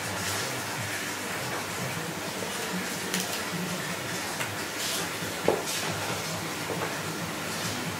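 Raw chicken pieces squelch as hands handle them.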